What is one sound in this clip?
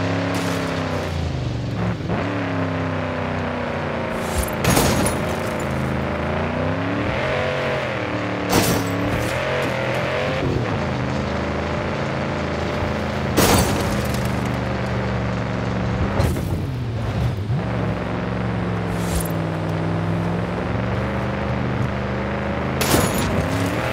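A car engine roars, rising and falling in pitch as it speeds up and slows down.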